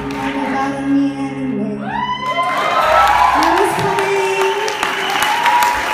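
A woman sings through a loudspeaker.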